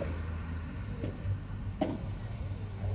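Padel rackets strike a ball with sharp pops.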